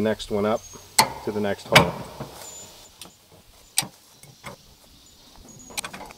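A metal jack clanks and ratchets with sharp clicks.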